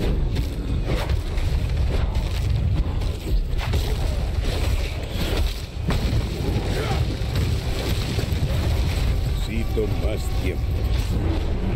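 Game combat effects thud and crackle with spell impacts.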